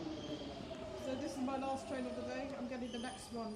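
Train brakes squeal in short, wavering bursts.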